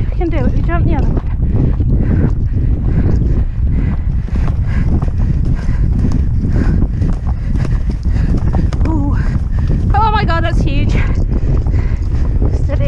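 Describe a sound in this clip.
A horse gallops, its hooves drumming quickly and steadily on turf.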